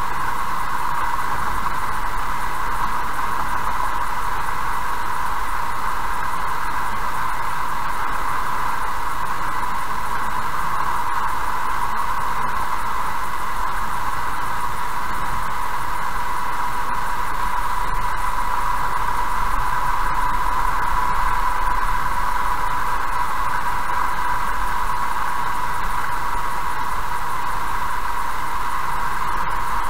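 A car's tyres hum steadily on a paved road.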